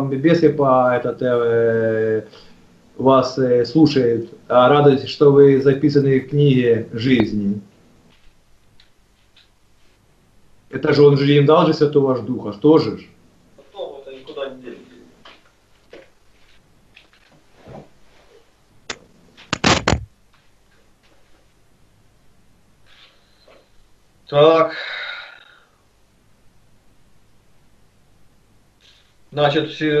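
An elderly man speaks slowly and calmly into a microphone, in pauses.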